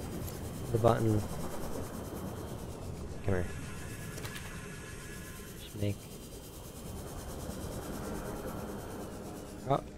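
A small underwater vehicle hums steadily as it glides through water.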